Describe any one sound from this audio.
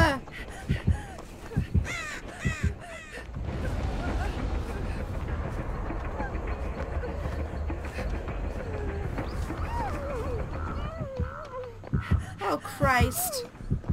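A young woman talks close to a headset microphone.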